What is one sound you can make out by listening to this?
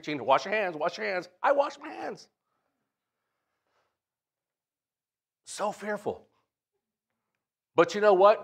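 A middle-aged man speaks with emphasis into a microphone, with pauses between phrases.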